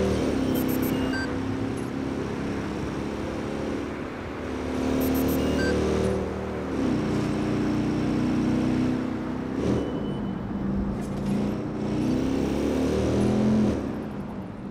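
A motorcycle engine roars at speed, rising and falling as it shifts gears.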